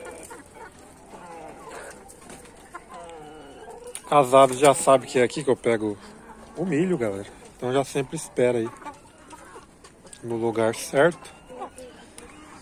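Chickens cluck softly nearby.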